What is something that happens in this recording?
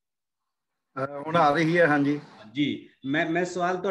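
An elderly man speaks with animation over an online call.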